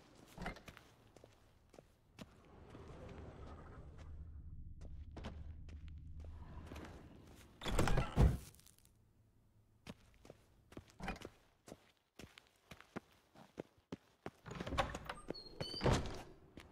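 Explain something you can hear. Footsteps tap quickly on a hard floor and wooden stairs.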